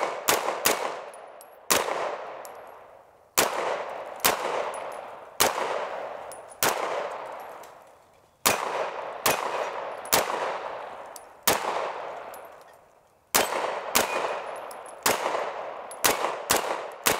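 Gunshots crack loudly outdoors one at a time, each echoing away across the open ground.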